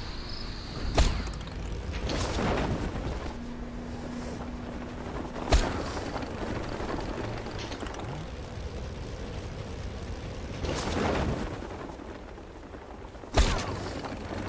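A parachute snaps open with a sharp thump.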